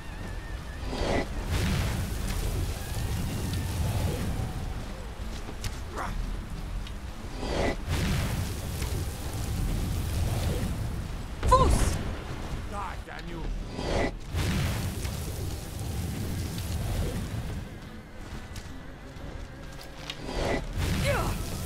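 A dragon roars loudly overhead.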